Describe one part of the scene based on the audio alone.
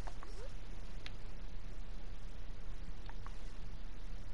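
Short soft menu clicks sound as options are selected.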